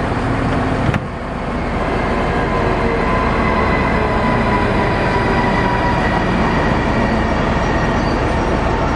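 An electric locomotive hums and whines as it pulls in close by.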